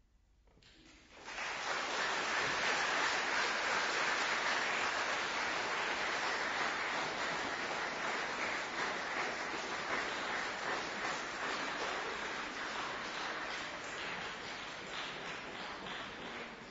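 An audience applauds loudly in a large echoing hall.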